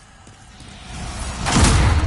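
A heavy sword swings with a loud whoosh.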